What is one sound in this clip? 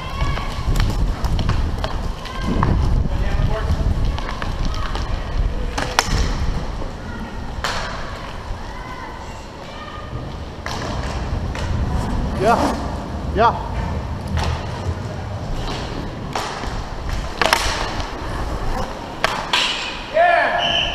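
Hockey sticks click and slap against a puck.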